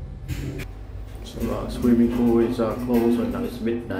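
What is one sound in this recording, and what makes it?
An elevator door slides shut.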